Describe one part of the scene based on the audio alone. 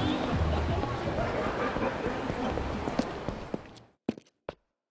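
A busy street hums with noise.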